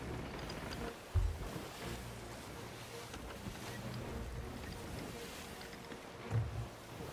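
Waves wash and roll against a ship's hull.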